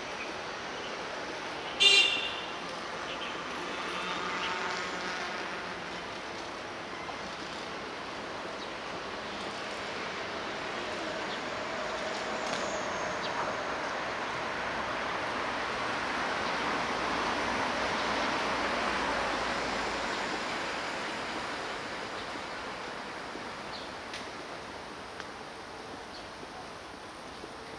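Traffic rumbles along a nearby street outdoors, swelling as a car passes and then fading.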